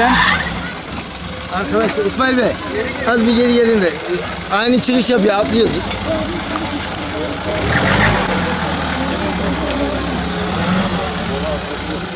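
An off-road engine roars and revs nearby.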